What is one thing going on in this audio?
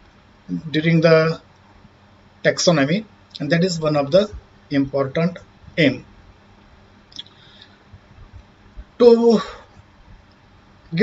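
A man speaks calmly and steadily into a close microphone, in short phrases with pauses.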